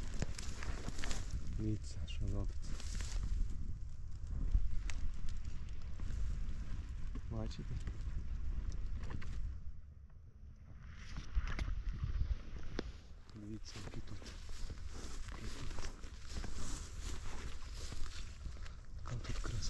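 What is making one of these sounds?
Leafy undergrowth rustles close by as it brushes past.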